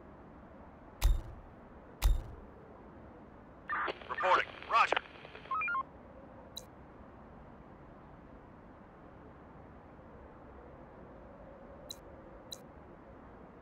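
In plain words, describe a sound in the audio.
Short game interface clicks sound now and then.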